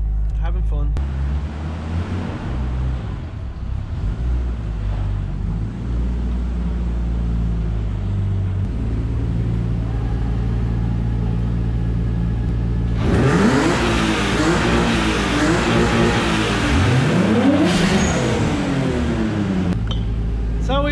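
A car engine idles and revs nearby in an echoing room.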